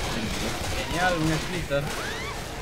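A pistol fires a shot.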